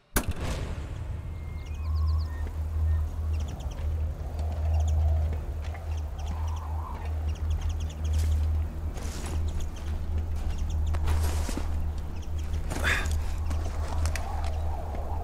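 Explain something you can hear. Footsteps clatter lightly over roof tiles.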